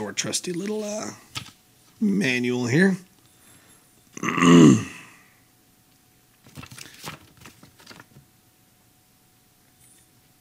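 Paper rustles and crinkles in hands close by.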